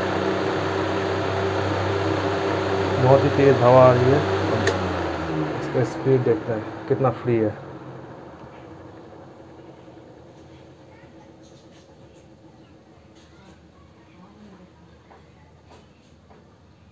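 An electric fan motor hums steadily, then grows quieter.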